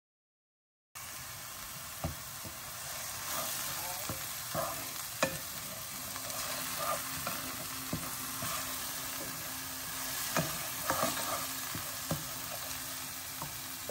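A wooden spatula scrapes and taps against a frying pan.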